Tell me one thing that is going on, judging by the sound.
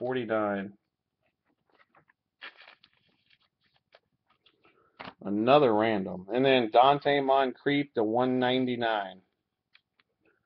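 Trading cards rustle and tap softly as they are handled.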